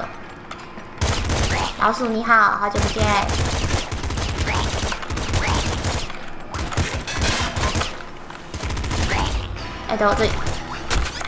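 Video game guns fire in rapid bursts.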